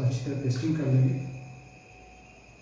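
A man speaks briefly and calmly close by.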